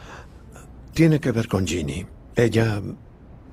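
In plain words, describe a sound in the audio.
An older man speaks calmly nearby.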